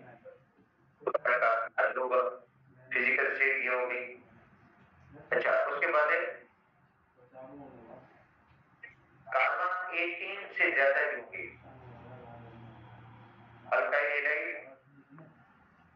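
A man speaks calmly into a headset microphone, explaining.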